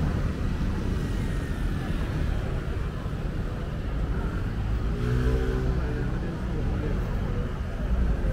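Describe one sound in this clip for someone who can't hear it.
Motor scooters pass by on the road.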